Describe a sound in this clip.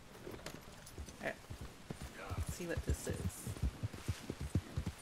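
A horse's hooves thud rhythmically on soft ground.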